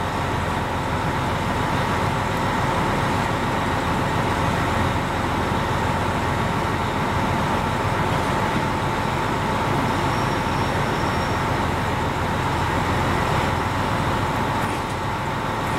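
Train motors whine steadily.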